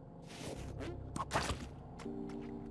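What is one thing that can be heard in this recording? An explosion booms in a video game.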